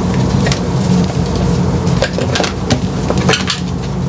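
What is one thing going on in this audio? A plastic container knocks against a table as it is set down.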